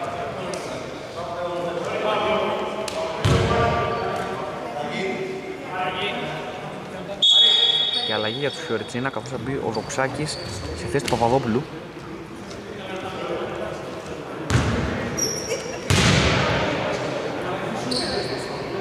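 Men talk and call out across a large echoing hall.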